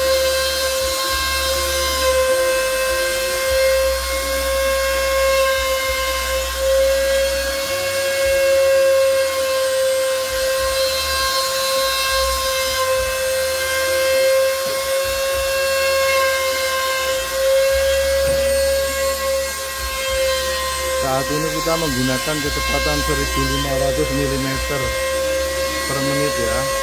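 A router spindle whines steadily at a high pitch.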